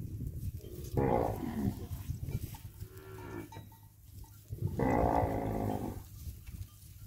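A calf bawls loudly nearby.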